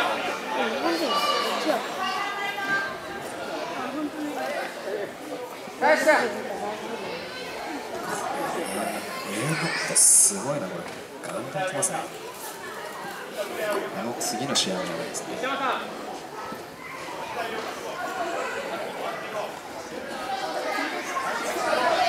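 Men shout and call out nearby in an echoing hall.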